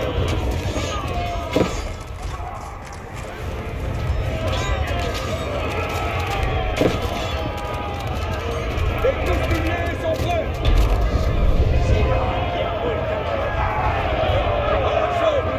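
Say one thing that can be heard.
Swords and shields clash over and over in a large fight.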